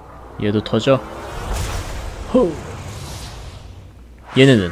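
A loud burst of smoke whooshes out.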